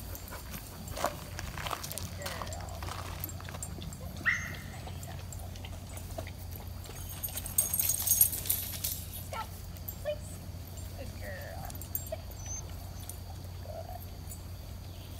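A woman outdoors gives short commands to a dog.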